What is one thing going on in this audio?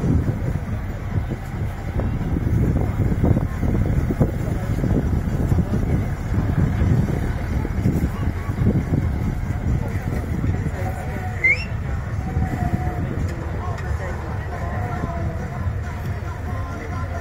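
A heavy truck engine rumbles and growls nearby.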